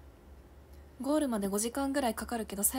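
A young woman speaks close to a microphone.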